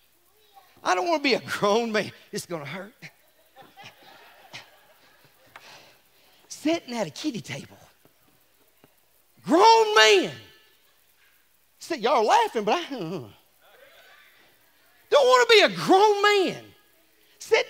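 A middle-aged man speaks with animation into a microphone in a large hall, in loud bursts.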